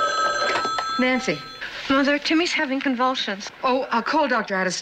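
A woman speaks anxiously into a telephone nearby.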